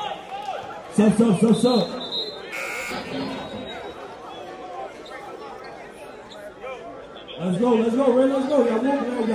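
A man shouts loudly with excitement close by.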